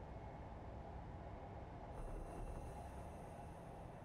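A train rushes under a bridge with a brief, louder roar.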